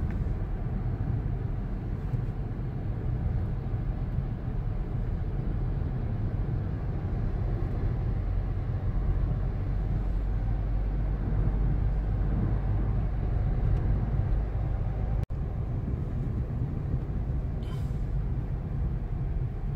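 A car's engine hums steadily from inside the cabin as it drives.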